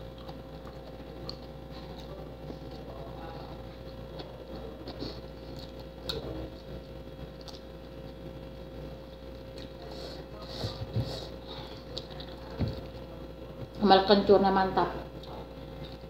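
A woman chews raw leafy greens close by.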